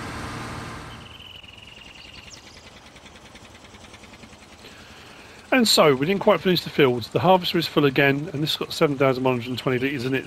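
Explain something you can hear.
A tractor engine hums quietly.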